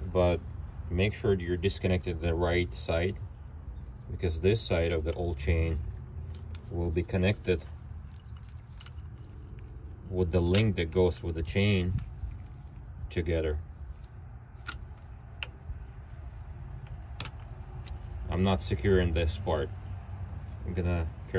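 A metal chain clinks softly as it is handled.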